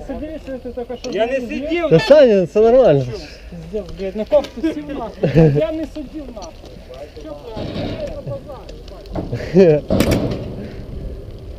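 Young men talk and laugh close by, outdoors.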